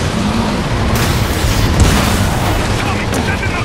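Blasts and rumbling explosions boom.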